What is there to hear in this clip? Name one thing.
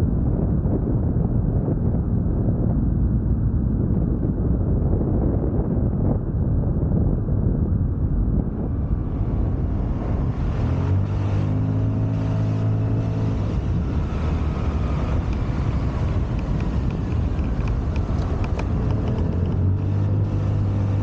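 Wind rumbles loudly past the microphone throughout.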